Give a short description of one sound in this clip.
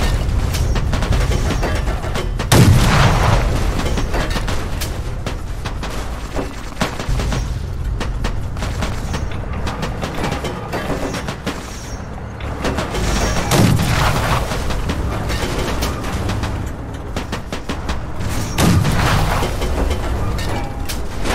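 An engine rumbles low and steady.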